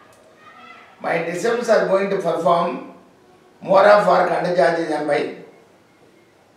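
A middle-aged man sings short phrases close by.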